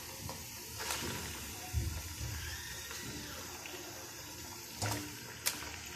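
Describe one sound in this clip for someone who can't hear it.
Raw meat slaps down into a pan.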